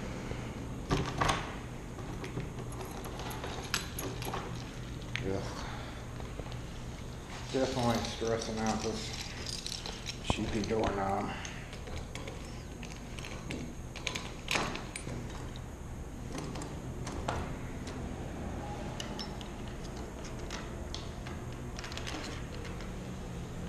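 A door latch clicks and rattles.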